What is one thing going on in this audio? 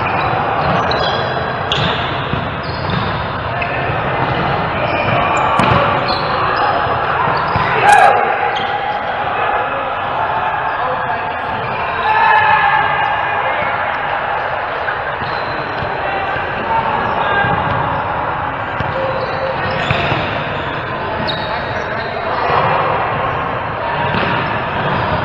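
Adult players call out to each other, their voices echoing in a large hall.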